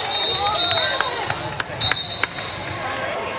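Young women cheer and shout in a large echoing gym.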